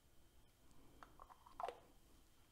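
A lid clinks against a glass jar.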